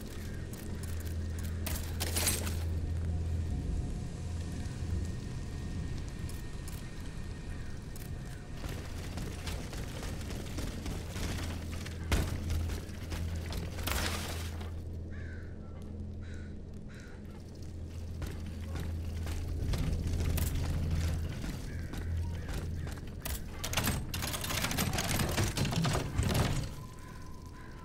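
Footsteps tap on wet stone.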